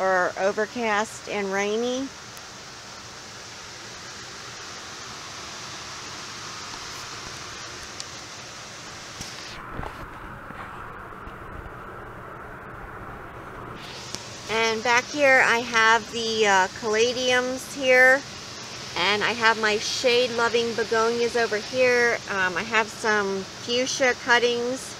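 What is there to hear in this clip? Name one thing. A woman talks calmly, close to the microphone.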